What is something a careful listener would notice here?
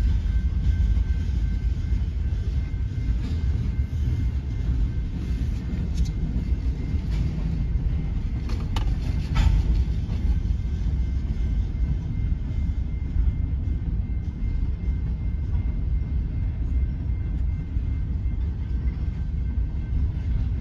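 Train wheels clank and squeal on the rails.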